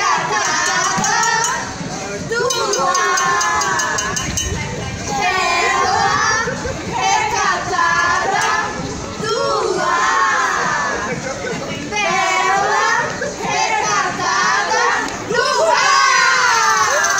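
A group of men and women sing together nearby outdoors.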